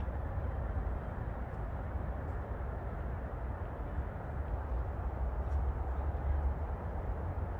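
Wind blows outdoors, rustling tree leaves.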